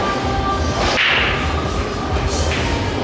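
A cue stick strikes a pool ball with a sharp click.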